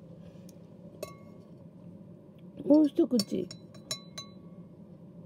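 Water beads shift and clink softly against a glass.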